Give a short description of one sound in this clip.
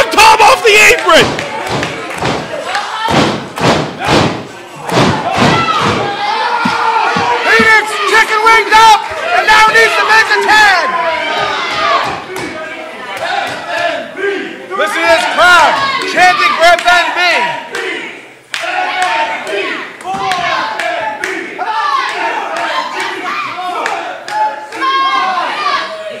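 A crowd of men and women shouts and cheers in an echoing hall.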